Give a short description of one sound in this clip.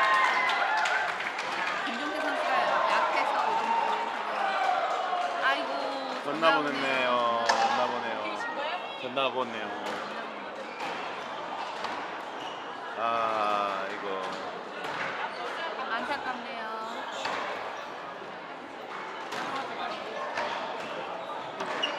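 A squash ball smacks sharply off a racket and the walls.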